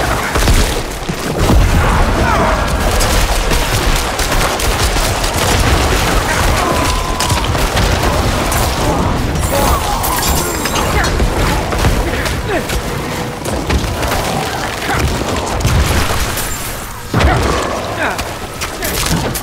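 Game combat sounds of clashing, hits and magic blasts ring out continuously.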